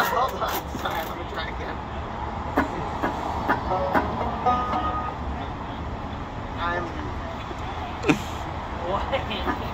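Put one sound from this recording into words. A resonator guitar strums.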